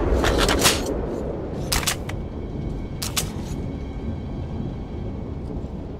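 Metal clanks as a crate is rummaged.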